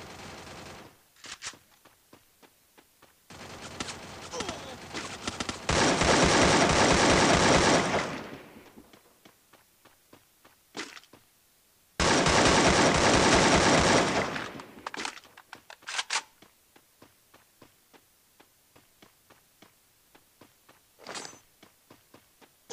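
Footsteps run over grass in quick, even steps.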